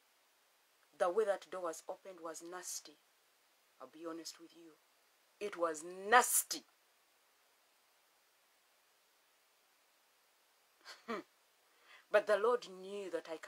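A woman speaks calmly and closely into a phone microphone, with pauses.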